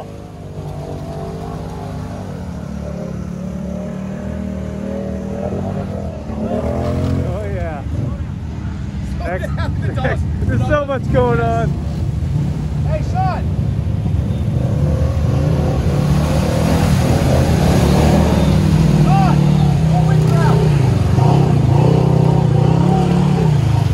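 Off-road vehicle engines rumble and rev loudly.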